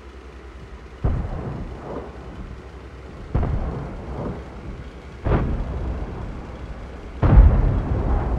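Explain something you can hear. Tank cannons fire with heavy booms.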